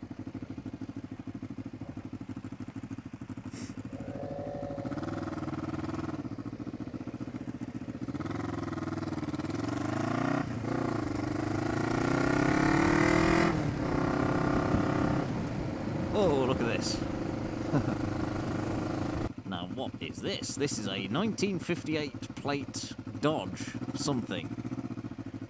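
A motorcycle engine hums and revs up, rising in pitch as it speeds up and dropping when it changes gear.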